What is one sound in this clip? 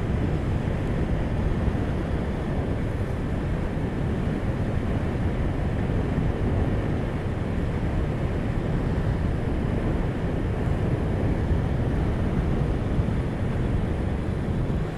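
Tyres roll steadily over asphalt with a low rumble.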